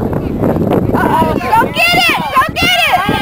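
Children shout and cheer loudly.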